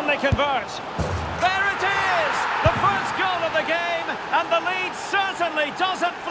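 A stadium crowd roars loudly after a goal.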